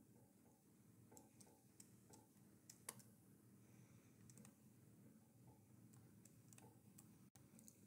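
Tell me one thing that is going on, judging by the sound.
Video game footsteps tap on stone.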